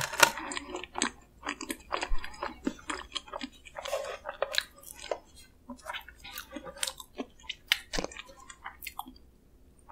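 Soft, crinkly pastry and cream rustle and squish close to a microphone.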